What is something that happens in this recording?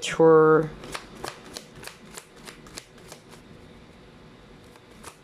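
Playing cards are shuffled with quick riffling clicks.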